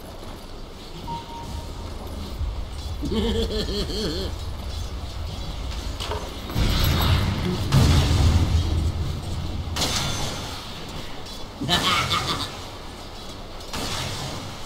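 Fantasy battle sound effects clash and crackle in bursts.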